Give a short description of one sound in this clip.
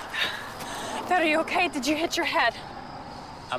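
A young woman speaks with urgency nearby.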